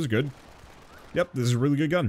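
Small guns fire rapidly in short bursts.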